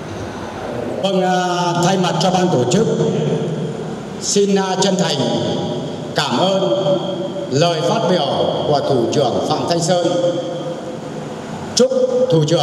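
An elderly man speaks formally into a microphone, heard through loudspeakers.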